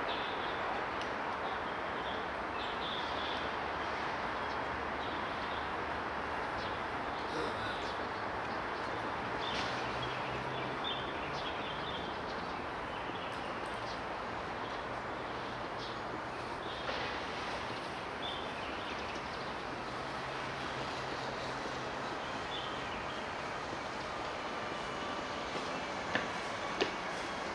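Steady city traffic hums outdoors.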